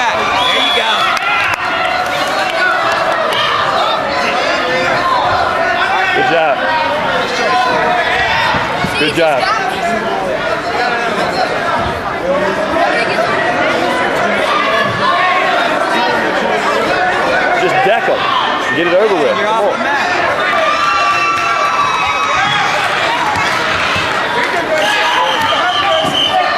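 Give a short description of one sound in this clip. A crowd of people chatters and calls out throughout a large echoing gym.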